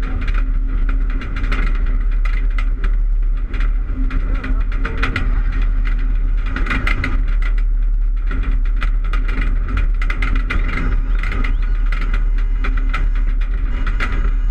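Mud and dirt clods pelt a car, rattling and clattering.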